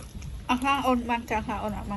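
A young man slurps food noisily.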